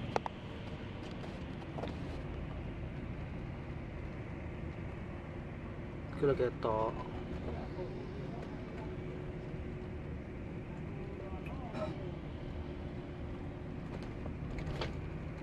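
A vehicle rumbles steadily along a road.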